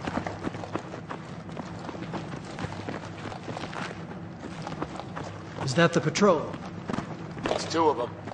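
Footsteps scuff and thud on a hard floor.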